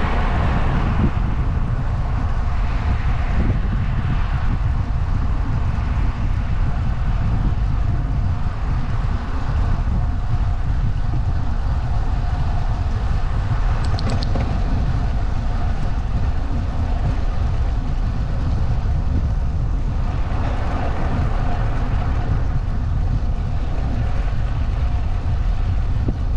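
Tyres roll with a steady hum on smooth asphalt.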